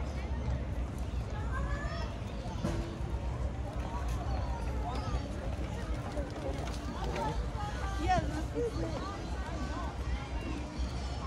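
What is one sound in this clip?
Adults talk in passing nearby.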